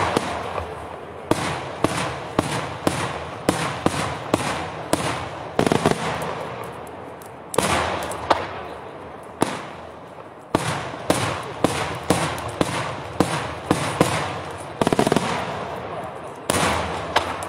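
Firework bursts bang loudly overhead in quick succession, echoing across open ground.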